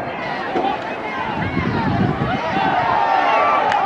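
Football players' pads crash together in a tackle.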